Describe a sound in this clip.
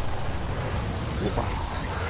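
Fire roars in a powerful blast.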